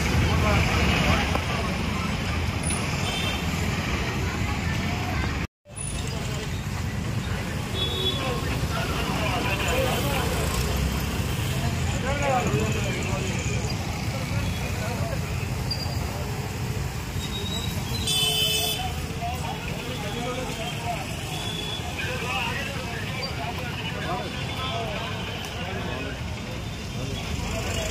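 Men talk nearby.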